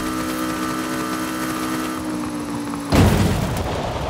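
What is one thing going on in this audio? A car lands with a heavy thud.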